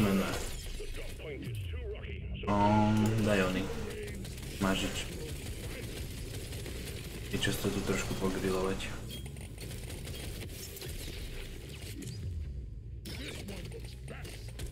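Game sound effects chime and crackle.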